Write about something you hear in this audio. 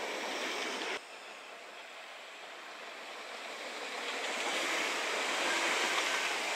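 A train approaches and rushes past with a loud rumble.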